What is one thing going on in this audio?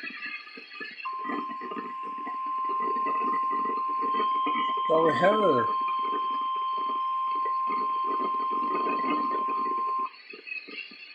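A weather radio sounds a steady, piercing alert tone.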